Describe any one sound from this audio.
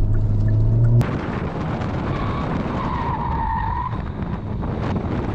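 Tyres roll over asphalt with steady road noise.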